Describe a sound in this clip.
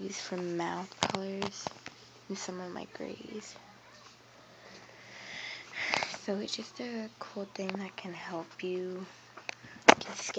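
Paper rustles and crinkles as a hand moves it.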